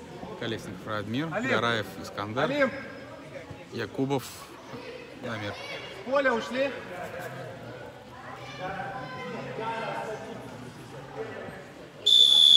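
Young boys shout and call out in a large echoing hall.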